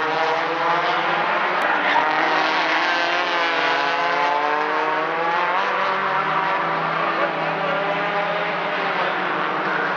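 A car engine revs up and down as it shifts gears.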